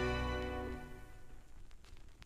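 Music plays from a record and quickly fades out.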